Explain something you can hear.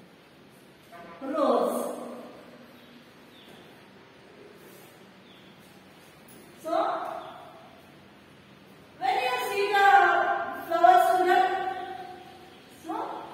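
A woman speaks calmly nearby, in a slightly echoing room.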